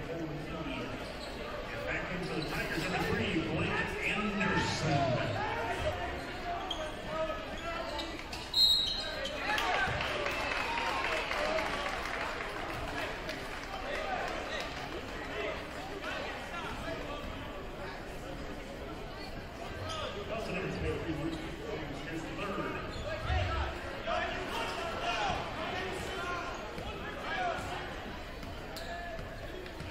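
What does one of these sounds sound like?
A crowd chatters and cheers throughout a large echoing gym.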